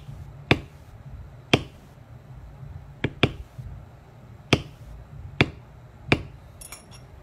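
A mallet taps sharply on a leather stamping tool at an uneven pace.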